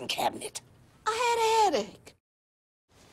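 A middle-aged woman cries out in a high, shaky voice.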